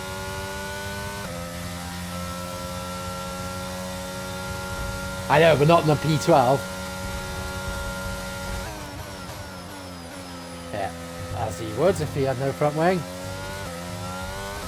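A racing car engine whines steadily, shifting pitch with gear changes.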